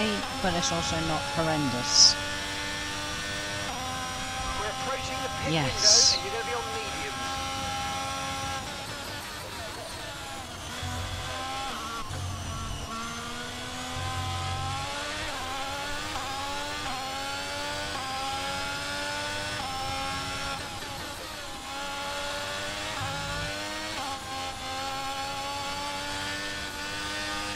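A racing car engine whines loudly, rising and falling in pitch as gears change.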